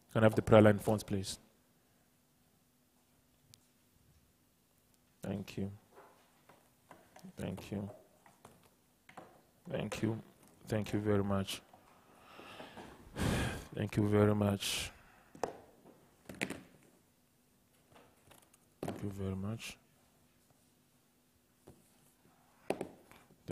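A man speaks calmly and closely in short bursts with pauses.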